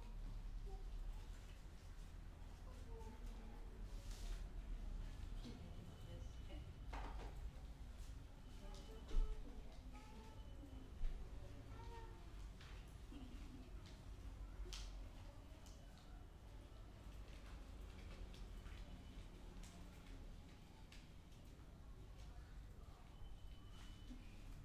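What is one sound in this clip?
Men talk quietly some distance away in a small room.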